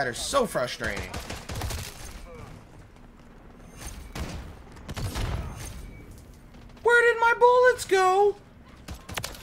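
A young man shouts excitedly into a close microphone.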